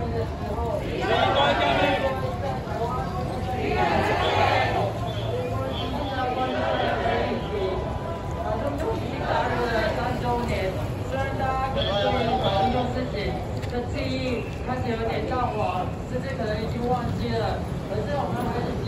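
A large crowd chants loudly together outdoors.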